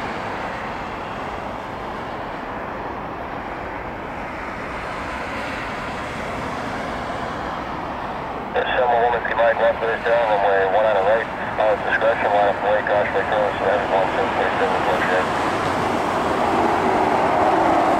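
A jet engine roars steadily in the distance.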